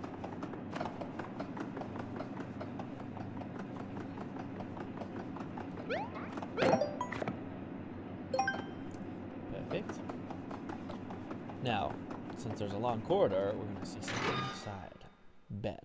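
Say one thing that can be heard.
Soft electronic game music plays steadily, then cuts out.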